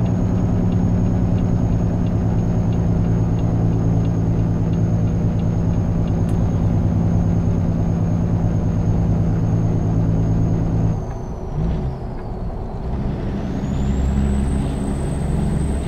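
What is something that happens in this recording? A semi-truck's diesel engine drones under load while cruising on a highway.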